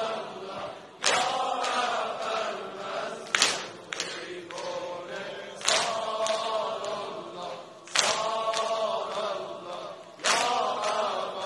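A crowd of men beats their chests in a slow, steady rhythm.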